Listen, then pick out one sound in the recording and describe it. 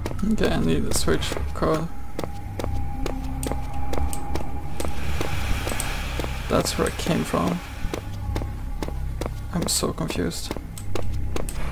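Footsteps walk steadily on a hard tiled floor.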